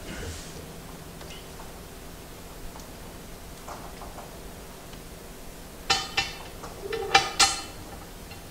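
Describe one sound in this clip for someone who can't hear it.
Metal parts clink and clatter sharply against each other.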